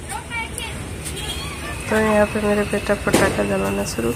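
A firecracker fizzes and sputters.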